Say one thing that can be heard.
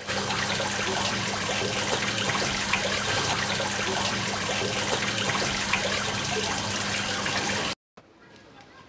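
Water splashes and trickles steadily in a fountain.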